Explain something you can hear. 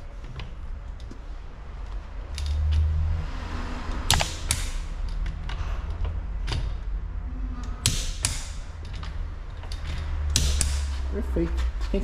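A metal tool clanks and ratchets against a car wheel.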